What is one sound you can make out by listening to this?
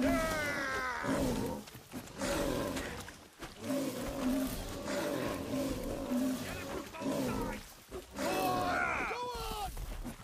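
A large beast roars and snarls.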